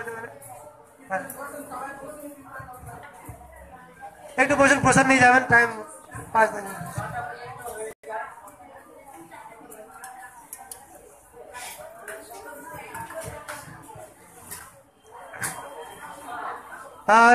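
Several women talk and chatter nearby in a room.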